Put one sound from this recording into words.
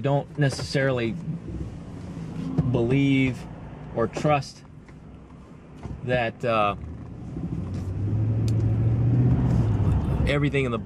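A car engine hums steadily inside the cabin.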